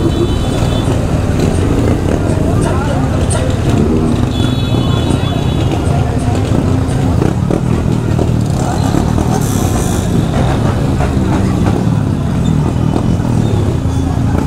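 Many motorcycle engines rumble and idle close by.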